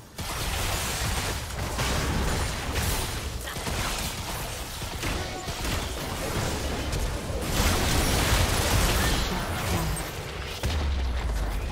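Magic blasts and clashing strikes crash rapidly in a fight.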